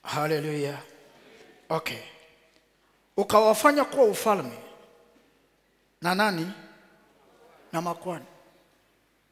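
A man preaches with animation through a microphone, in pauses between loud phrases, in an echoing hall.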